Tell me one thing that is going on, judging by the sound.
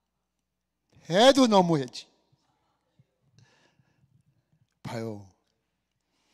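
A middle-aged man speaks with animation into a microphone, in short bursts with long pauses.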